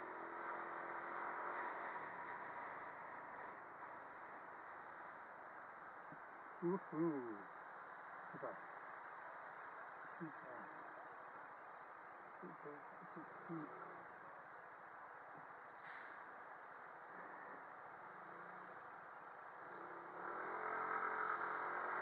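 A motorcycle engine hums and rises in pitch.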